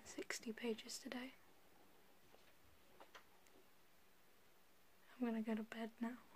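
A young woman talks casually, close to the microphone.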